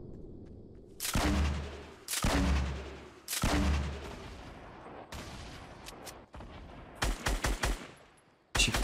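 Gunshots crack from a game.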